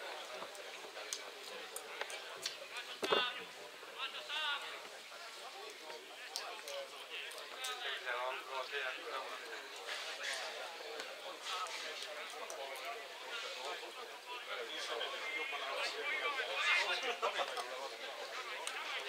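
Adult men talk and call out close by, outdoors.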